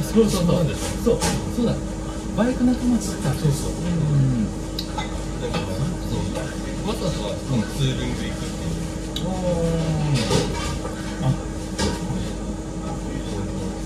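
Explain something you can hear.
A man slurps soup from a bowl.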